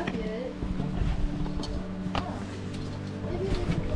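A hand slides and knocks along a steel cable.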